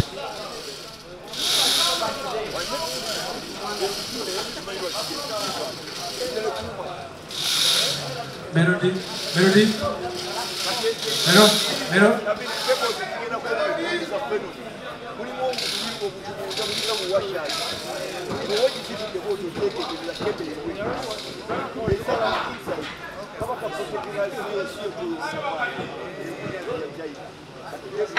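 A man talks with animation through a microphone and loudspeakers, echoing outdoors.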